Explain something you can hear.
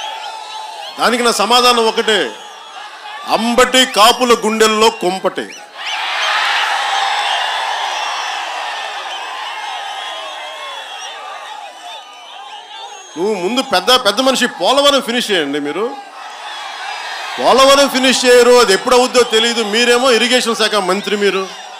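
A man speaks forcefully into a microphone through loudspeakers.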